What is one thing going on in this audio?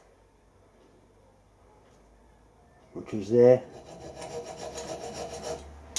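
A hacksaw cuts through metal with steady back-and-forth strokes.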